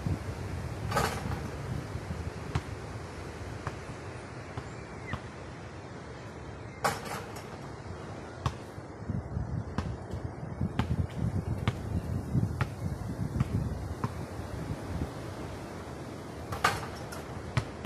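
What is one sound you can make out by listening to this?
A basketball clangs off a metal hoop.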